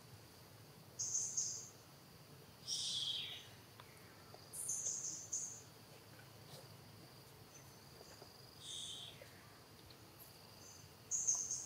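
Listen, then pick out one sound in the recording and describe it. A baby monkey squeals in short, high-pitched cries, close by.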